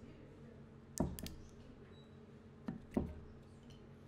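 A cork squeaks and pops out of a bottle.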